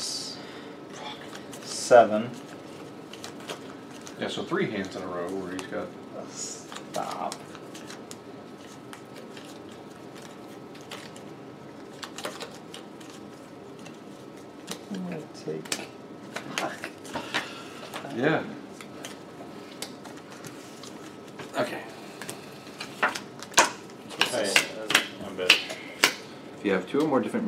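Playing cards tap and slide on a table.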